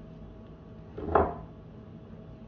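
A heavy metal speaker driver part is set down on a table.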